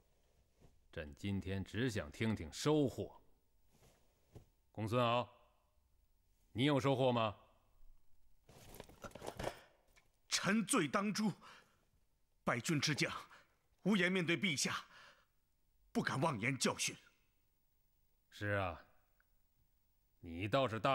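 A man speaks sternly and slowly, close by.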